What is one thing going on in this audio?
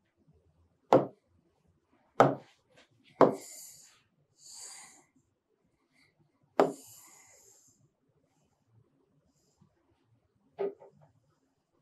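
A pen taps sharply against a hard board.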